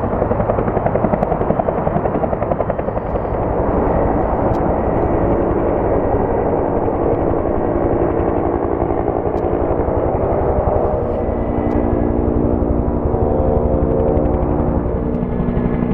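A helicopter's engine drones and hums, growing louder as it nears.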